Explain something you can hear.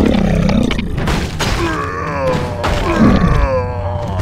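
Magic spells whoosh and crackle in a fantasy game battle.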